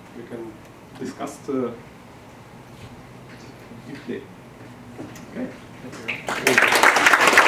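A young man speaks haltingly into a microphone.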